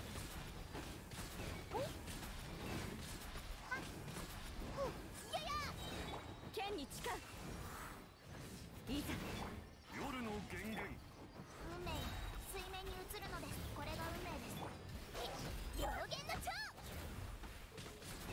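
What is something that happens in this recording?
Magical blasts and sword strikes crash and boom in quick succession.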